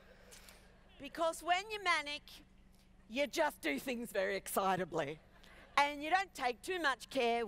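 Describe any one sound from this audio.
A middle-aged woman speaks with animation into a headset microphone.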